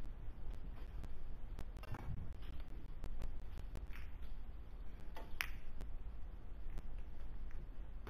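Billiard balls clack together sharply on a table.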